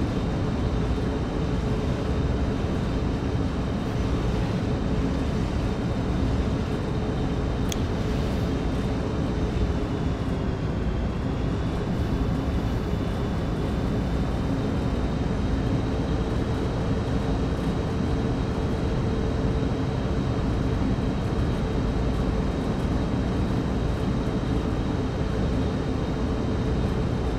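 Train wheels rumble and clatter along the rails.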